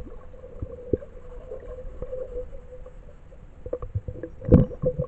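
Muffled knocks and bumps sound underwater.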